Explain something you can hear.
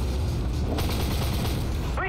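A tank cannon fires with a heavy boom.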